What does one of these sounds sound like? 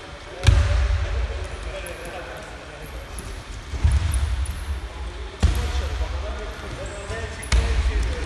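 Bodies thud onto wrestling mats in a large echoing hall.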